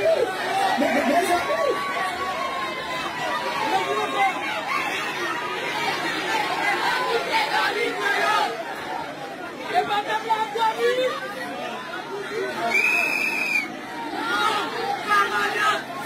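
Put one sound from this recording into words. A large crowd of people talks and calls out outdoors.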